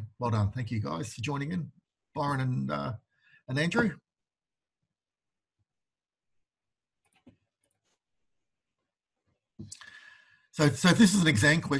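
An elderly man talks calmly through a microphone, pausing between phrases.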